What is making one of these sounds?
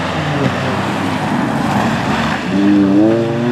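Tyres hiss on a wet road as a car speeds past.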